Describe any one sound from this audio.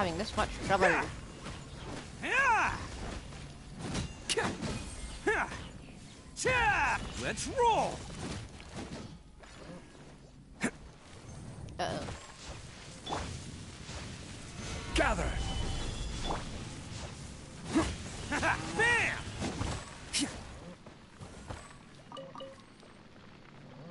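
Game sword strikes and magic blasts crash and boom in quick bursts.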